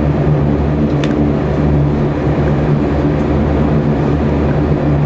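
A propeller engine drones loudly and steadily, heard from inside the cabin.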